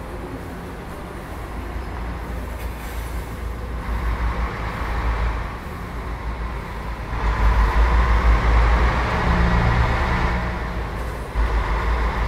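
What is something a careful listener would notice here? A large bus engine rumbles steadily and swells as the bus pulls away.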